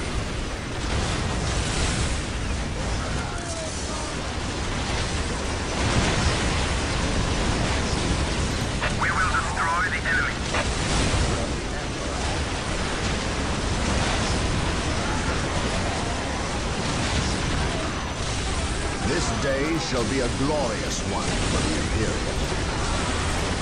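Laser beams and guns fire rapidly in a noisy battle.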